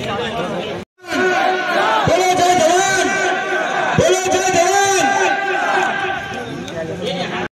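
A man speaks loudly into a microphone, heard through loudspeakers outdoors.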